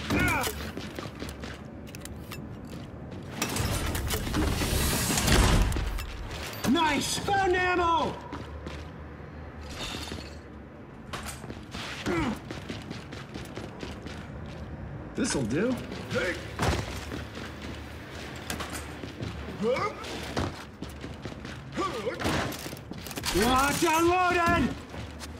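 Heavy armoured footsteps clank on a metal floor.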